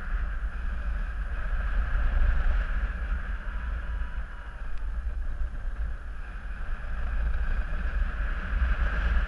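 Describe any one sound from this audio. Wind rushes and buffets steadily in flight outdoors.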